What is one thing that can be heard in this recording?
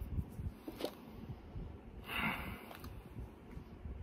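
A man sniffs deeply.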